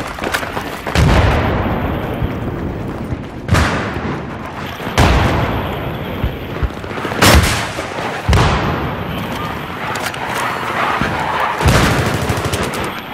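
Heavy explosions boom and rumble.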